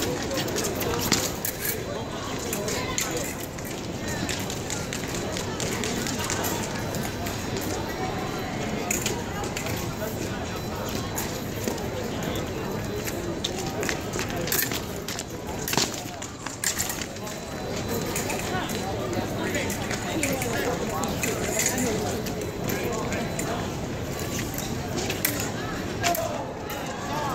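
Blades clash and click sharply in quick bursts.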